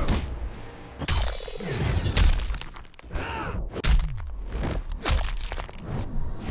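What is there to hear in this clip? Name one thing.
Bones crunch and crack loudly.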